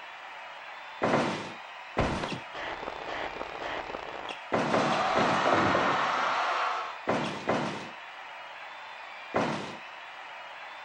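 Heavy thuds and smacks of wrestlers striking each other ring out.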